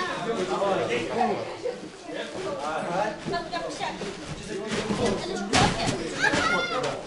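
Several young men talk at once in a large echoing hall.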